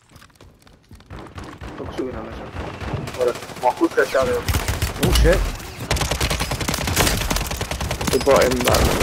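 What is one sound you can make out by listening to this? Gunfire and explosions boom and crack close by.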